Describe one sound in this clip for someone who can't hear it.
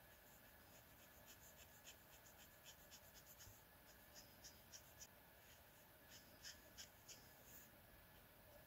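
A marker tip ticks lightly against paper.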